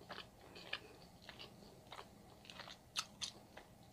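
Sticky meat tears apart between fingers.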